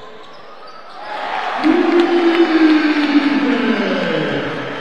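A crowd in an indoor arena cheers loudly.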